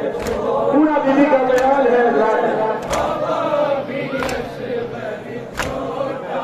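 A man chants a mournful lament through a loudspeaker outdoors.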